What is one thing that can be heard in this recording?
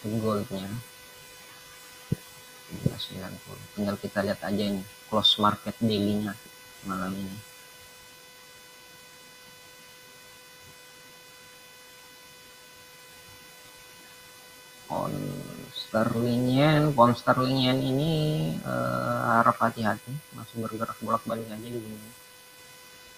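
A young man speaks calmly through a microphone in an online call, pausing between phrases.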